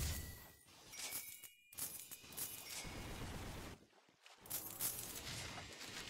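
Coins chime again and again as items are picked up.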